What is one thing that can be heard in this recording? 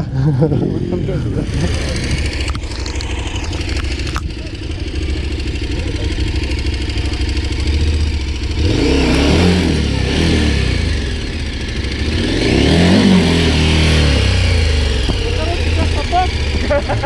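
A motorcycle engine idles and revs loudly.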